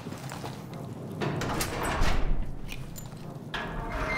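A heavy metal door latch clanks as it is turned.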